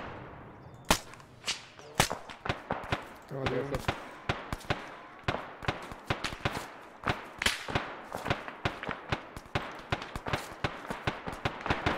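Rifle shots ring out again and again, echoing through the woods.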